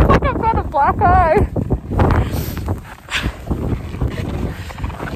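A young woman speaks close up, raising her voice over the wind.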